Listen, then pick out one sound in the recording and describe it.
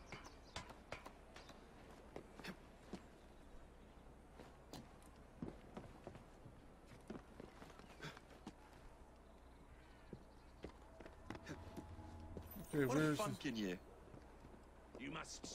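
Footsteps tap quickly on a roof.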